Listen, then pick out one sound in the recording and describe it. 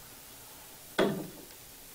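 A heavy wooden door slams shut with a dull thud.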